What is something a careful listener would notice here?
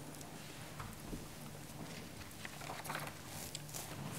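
An elderly woman speaks quietly into a microphone.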